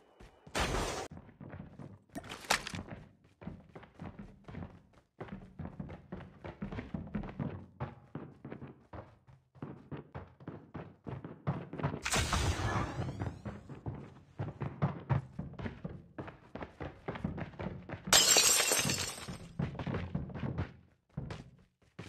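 Footsteps run quickly across hard ground and floors.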